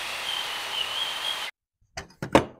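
A power tool whirs briefly.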